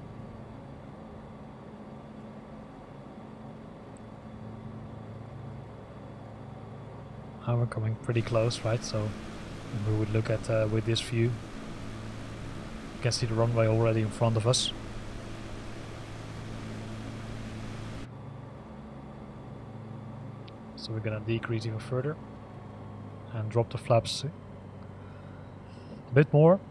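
A light aircraft engine drones steadily.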